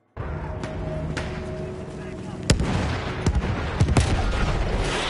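Gunshots and explosions boom in a battle.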